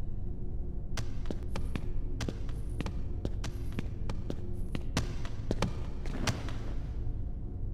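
Heavy footsteps echo in a large hall.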